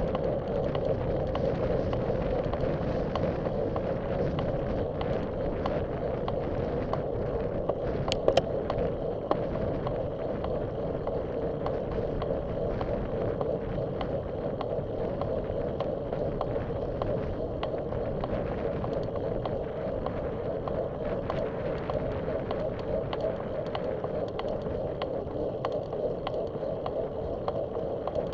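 Wind rushes loudly and steadily past the microphone outdoors.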